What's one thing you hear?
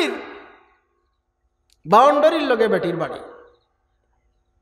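A man chants in a drawn-out, sung voice through a microphone and loudspeakers.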